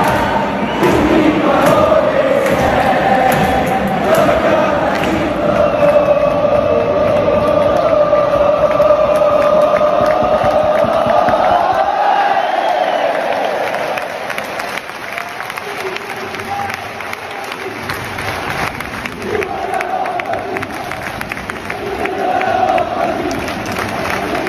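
A huge stadium crowd sings a chant loudly in unison.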